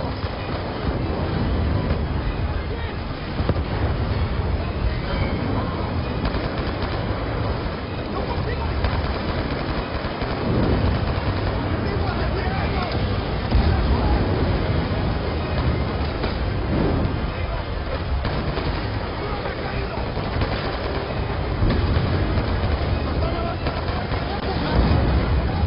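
Explosions rumble and boom throughout.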